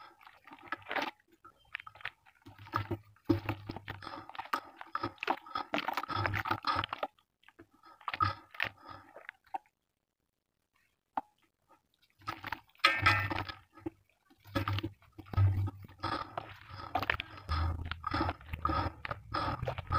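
Hands squish and slosh through wet mud in water.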